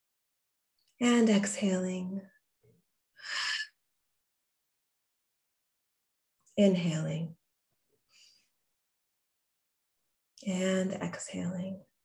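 A young woman sings close to a microphone in short phrases, with pauses between them.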